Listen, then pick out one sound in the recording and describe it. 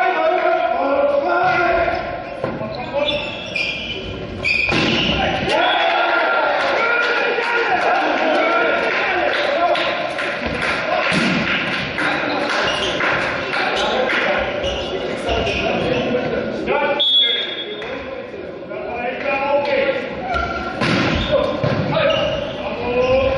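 Sneakers squeak on the hall floor.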